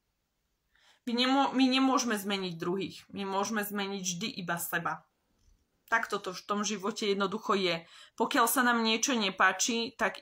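A young woman speaks close up with animation.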